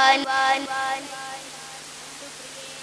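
A young boy sings into a microphone, heard through a loudspeaker.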